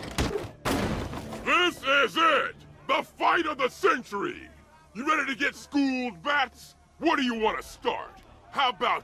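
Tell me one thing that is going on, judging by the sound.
A man with a deep voice taunts loudly and with animation.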